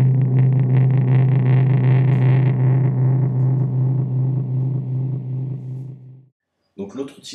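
A distorted electric guitar chord rings out and slowly fades.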